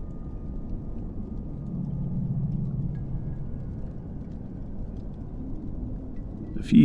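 Wind blows softly outside, muffled through a window.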